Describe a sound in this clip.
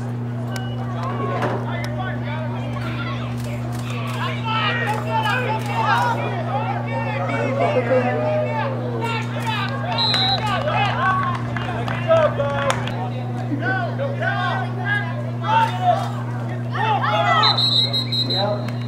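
Spectators and young players shout and cheer outdoors.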